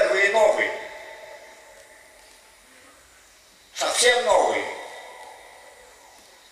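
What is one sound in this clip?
A middle-aged man shouts loudly into a microphone, with a ringing echo.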